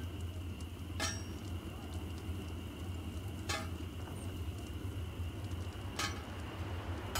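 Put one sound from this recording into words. A hammer strikes metal on an anvil with ringing clangs at a slow, even pace.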